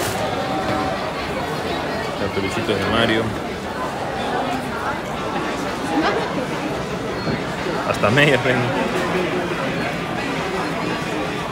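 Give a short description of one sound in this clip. Many people chatter at once in a busy indoor crowd.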